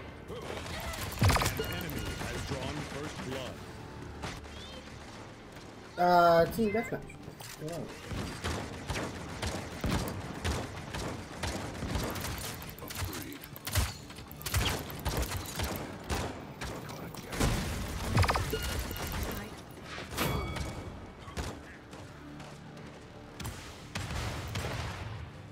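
Crossbow bolts fire with sharp twangs and thuds.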